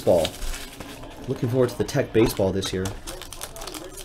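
Cardboard rustles as hands open a box.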